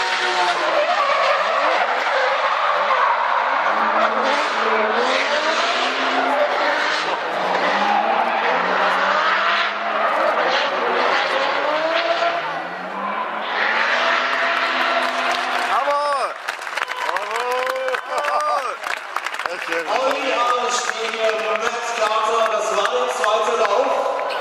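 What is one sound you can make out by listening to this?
Car engines rev hard and bounce off the limiter as the cars drift.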